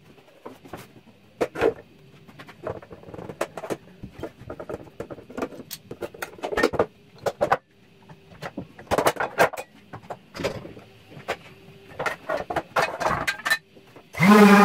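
Metal clamps clatter and knock against wood.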